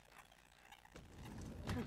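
A man pushes open a sliding glass door.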